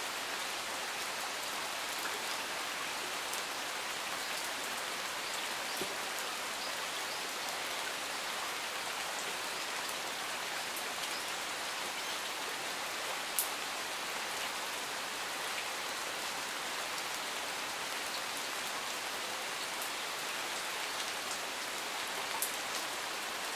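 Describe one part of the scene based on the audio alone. Light rain falls steadily outdoors, with scattered drips.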